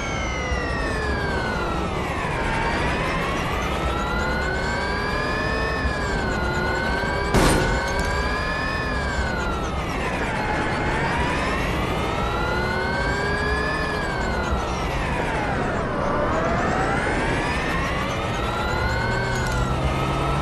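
A racing car's electric motor whines loudly, rising and falling in pitch as it speeds up and slows down.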